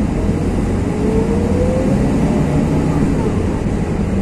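A bus passes close by.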